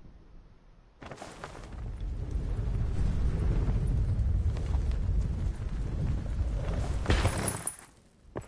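Wind rushes loudly past a gliding skydiver.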